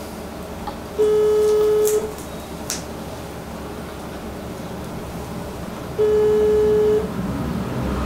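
A phone's ringing tone beeps through the earpiece.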